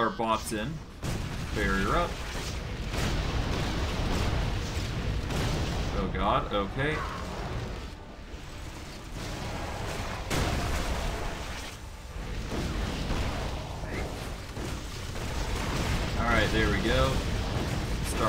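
Magic blasts crackle and roar in a fierce fight.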